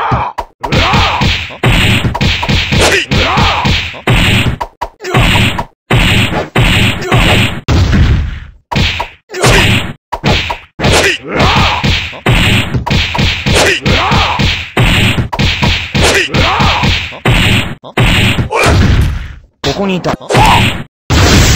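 Punches and energy blasts thud and crackle in quick bursts.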